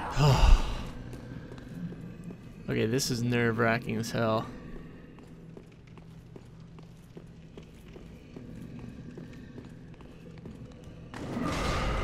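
Armoured footsteps run over a stone floor.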